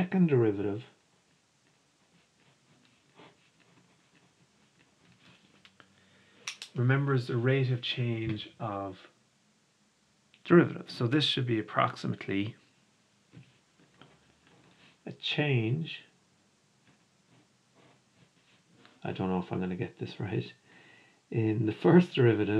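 A marker squeaks and scratches on paper.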